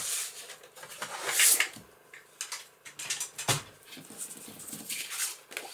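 Paper rustles and crinkles as it is handled and folded.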